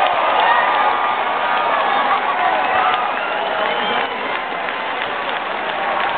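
A stadium crowd cheers and shouts outdoors.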